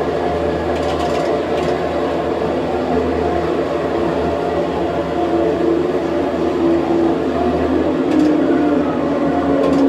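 An electric commuter train's motors whine as it slows down, heard through arcade game loudspeakers.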